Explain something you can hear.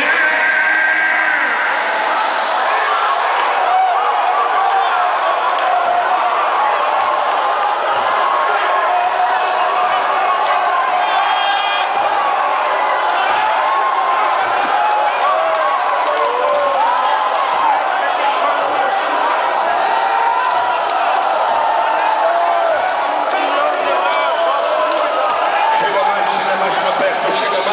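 A large crowd sings and calls out loudly in a big echoing hall.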